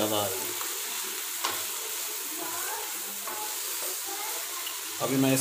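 A wooden spatula scrapes and stirs against a pan.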